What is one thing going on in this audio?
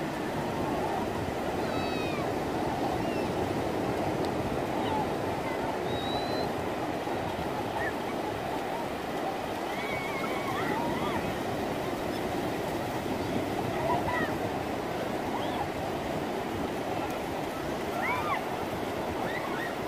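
Waves crash and roar steadily on the shore.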